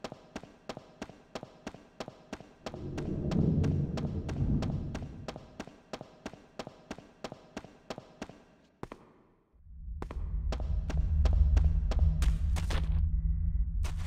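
Quick footsteps run steadily on a hard stone floor.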